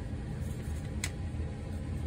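A paintbrush taps against a plastic paint tray.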